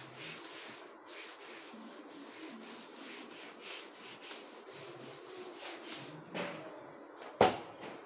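An eraser rubs back and forth across a whiteboard in quick strokes.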